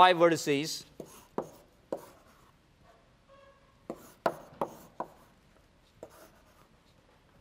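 Chalk taps and scrapes against a blackboard.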